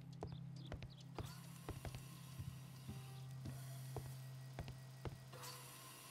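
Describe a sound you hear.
Footsteps tread slowly.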